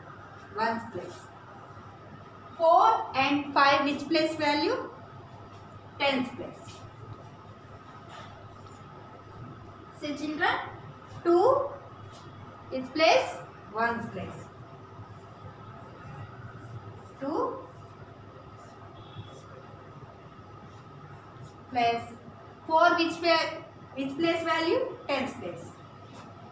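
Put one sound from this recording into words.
A young woman speaks clearly and calmly, as if teaching.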